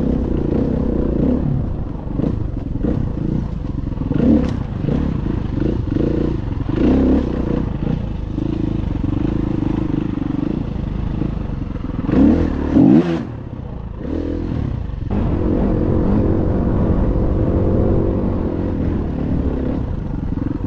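A dirt bike engine revs and roars up close.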